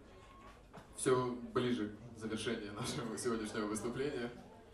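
A young man sings loudly into a microphone.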